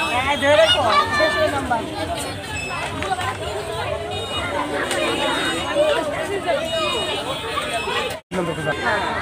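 Children chatter and shout outdoors.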